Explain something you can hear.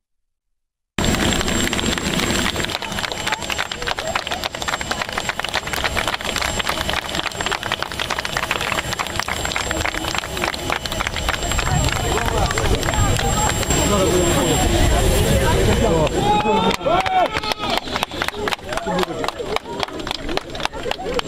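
A crowd cheers and claps loudly outdoors.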